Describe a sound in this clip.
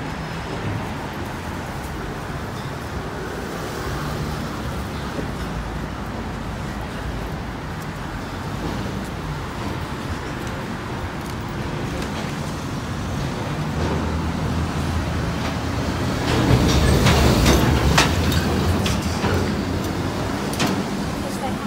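Road traffic passes on a wet road.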